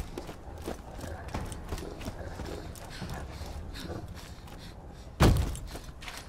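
Footsteps crunch on gravel at a steady walking pace.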